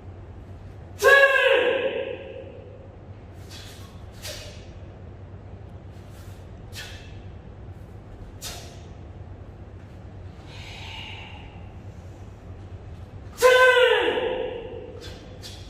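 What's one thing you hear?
A man lets out sharp, loud shouts that echo in a large hall.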